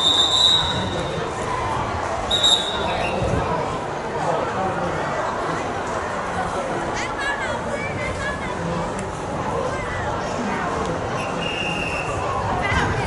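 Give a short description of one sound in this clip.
A crowd of young people chatters and calls out outdoors at a distance.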